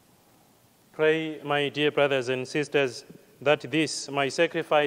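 A man chants a prayer into a microphone, clear and close, in a lightly echoing room.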